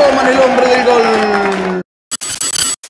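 A large crowd cheers in a stadium.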